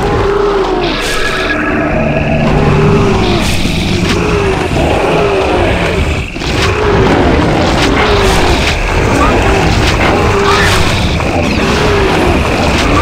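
Combat blows and spell effects crackle repeatedly.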